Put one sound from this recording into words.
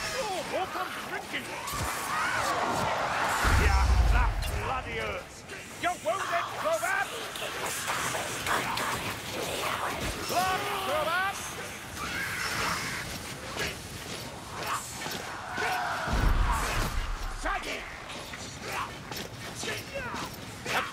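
Weapons clash and strike with sharp thuds.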